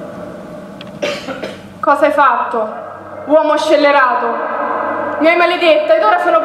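A woman sings loudly on a stage, her voice ringing out in a large hall.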